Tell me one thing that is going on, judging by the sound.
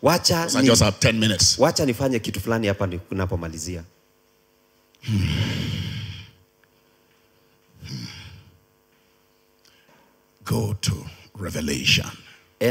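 A middle-aged man preaches with passion into a microphone, heard through loudspeakers, with pauses between phrases.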